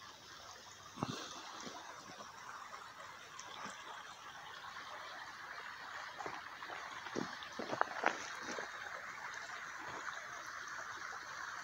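A shallow stream trickles softly nearby.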